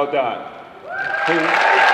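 A man speaks into a microphone over loudspeakers in a large, echoing room.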